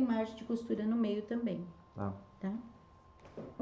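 An elderly woman speaks calmly close to a microphone.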